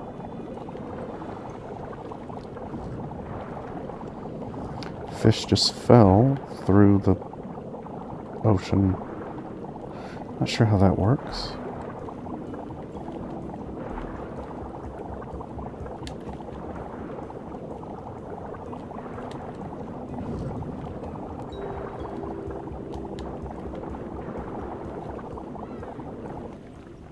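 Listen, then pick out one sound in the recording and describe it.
Water murmurs and bubbles softly all around, as if heard underwater.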